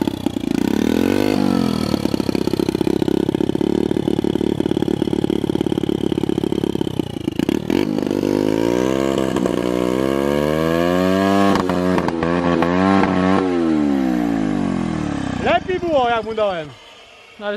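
A small motorbike engine runs close by, revving up and down.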